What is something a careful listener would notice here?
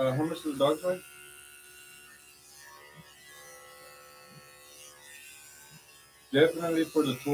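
Electric clippers buzz steadily.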